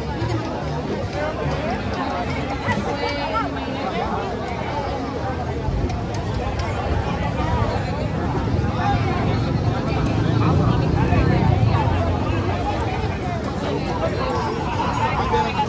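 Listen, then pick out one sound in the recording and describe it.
A large crowd of men and women chatters loudly outdoors.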